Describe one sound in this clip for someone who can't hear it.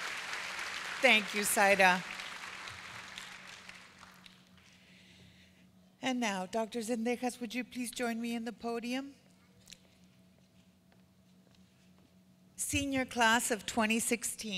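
A woman speaks calmly through a loudspeaker in a large echoing hall.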